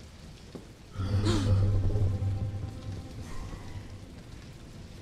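Fire roars loudly.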